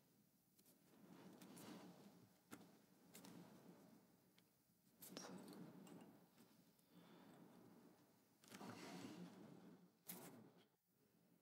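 Thread rustles faintly as fingers wind it.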